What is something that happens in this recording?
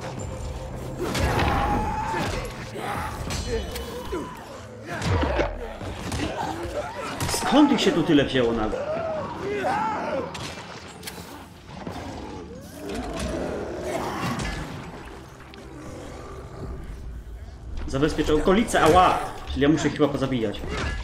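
A heavy weapon thuds into flesh with wet impacts.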